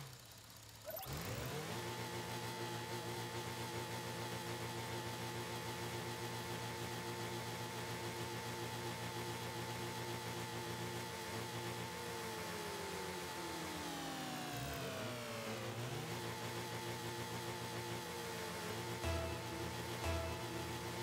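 Car engines hum steadily with a low, even drone.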